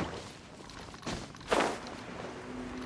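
A sharp whoosh sweeps past.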